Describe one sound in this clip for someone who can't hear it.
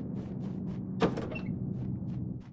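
A wooden door clicks and swings open.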